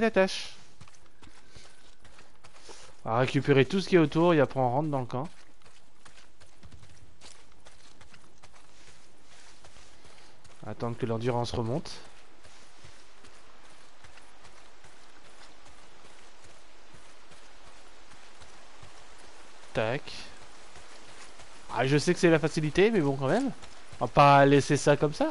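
A young man talks with animation close to a headset microphone, in bursts.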